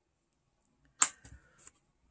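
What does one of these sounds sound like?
A small metal pan clicks as it is pried loose.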